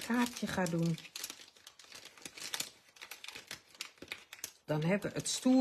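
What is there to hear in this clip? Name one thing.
Plastic packaging crinkles close by.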